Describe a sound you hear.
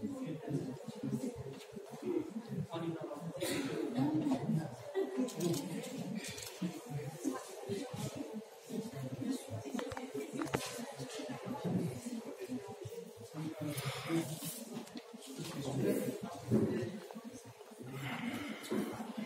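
A group of men and women talk quietly indoors.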